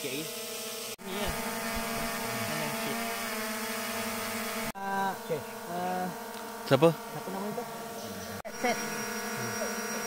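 A drone's propellers buzz and whine steadily overhead.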